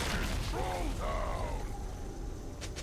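Magical spell effects whoosh and chime.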